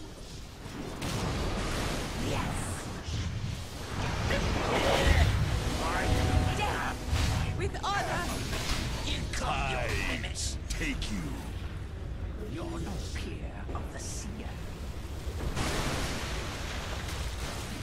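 Spell blasts and combat effects crackle and boom in a video game battle.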